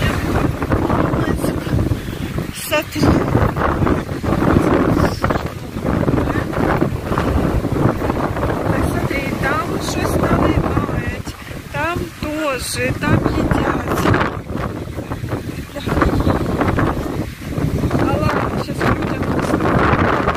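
Strong wind blows roughly into the microphone outdoors.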